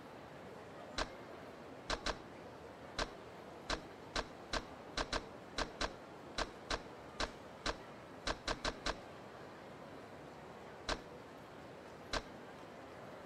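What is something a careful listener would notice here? Short menu clicks tick as selections move up and down.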